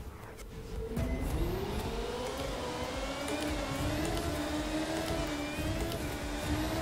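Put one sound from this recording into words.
A racing car engine whines and rises in pitch as it speeds up.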